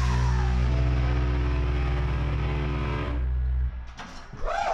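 A rock band plays loudly through amplifiers.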